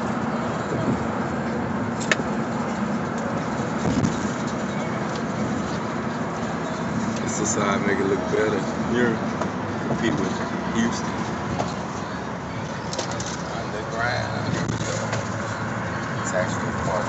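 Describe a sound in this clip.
A car's engine hums steadily while driving.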